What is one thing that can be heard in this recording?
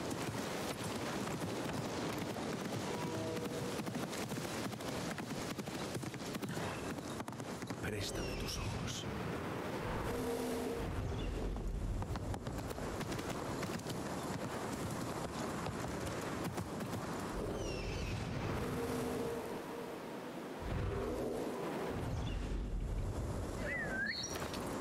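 Horse hooves clop on a dirt path.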